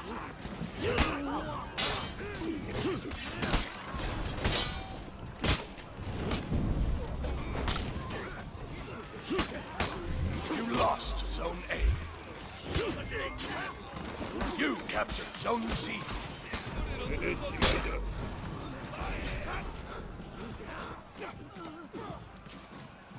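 Swords clash and strike again and again in a battle.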